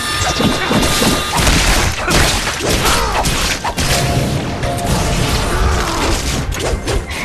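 Swords slash and clash in quick, loud bursts.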